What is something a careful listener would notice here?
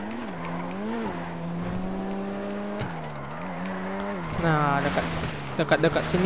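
A sports car engine hums and revs up and down as the car drives.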